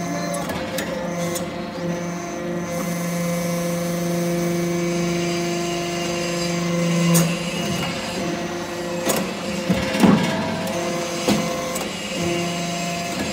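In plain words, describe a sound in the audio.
A hydraulic press hums steadily.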